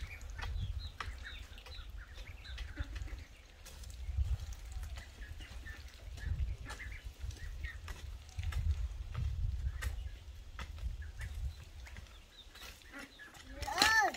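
A hoe digs into soil with dull scraping thuds.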